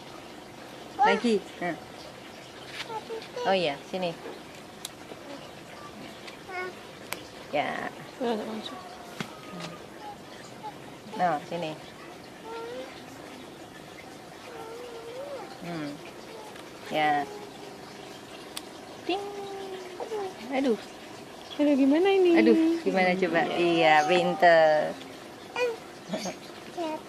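A young child talks and babbles nearby.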